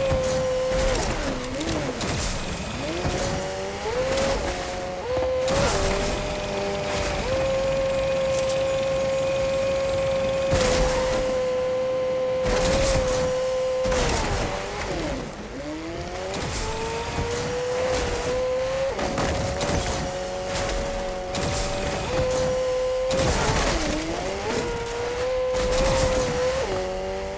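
Car tyres thud and bump over rough ground.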